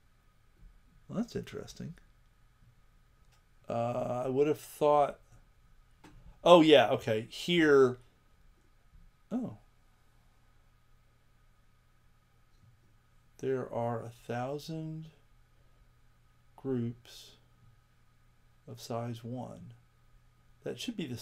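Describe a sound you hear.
An elderly man talks calmly into a close microphone, in short bursts with pauses.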